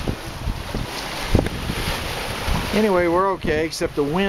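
Sea water rushes and splashes past a moving boat's hull.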